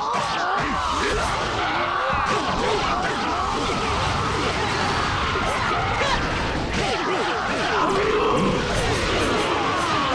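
Bursts of magical energy crackle and explode.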